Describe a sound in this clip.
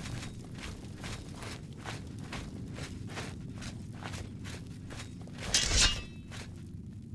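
Footsteps echo steadily on stone.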